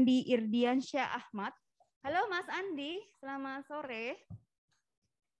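A woman speaks with animation through an online call.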